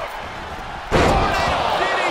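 A heavy body slams hard onto a ring mat.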